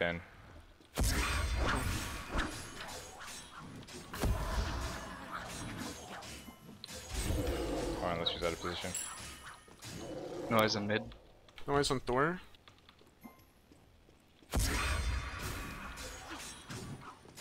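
Game combat effects clash and thud.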